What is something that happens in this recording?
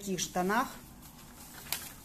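Stiff paper rustles softly as a sheet is unrolled.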